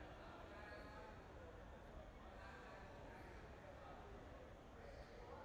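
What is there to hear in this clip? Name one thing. A scattered crowd murmurs and chatters in a large echoing hall.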